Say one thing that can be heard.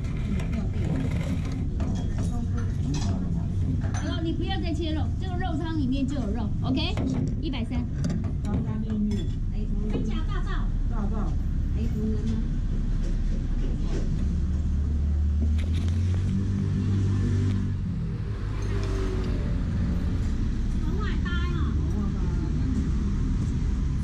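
A crowd of men and women chatter around, close by and in the distance.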